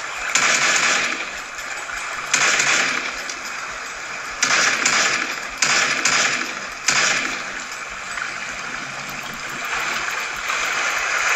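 Video game sound effects burst out loudly from a small phone speaker.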